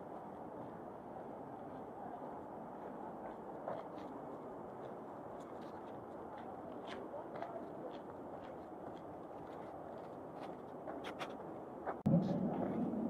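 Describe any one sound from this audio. Footsteps tread steadily on a paved path outdoors.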